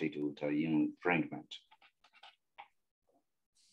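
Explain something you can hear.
An adult man speaks calmly through an online call.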